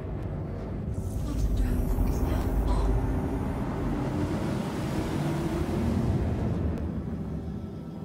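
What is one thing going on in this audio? Thrusters hiss and rush in a brief swell.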